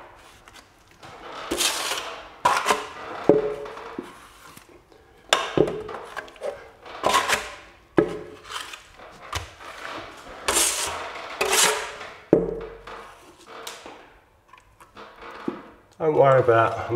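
A man scrapes a tool against a plaster ceiling in short, rough strokes.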